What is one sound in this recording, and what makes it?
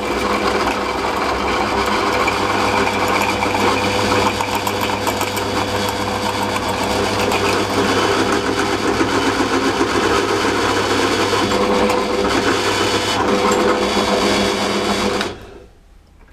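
A drill bit grinds into metal.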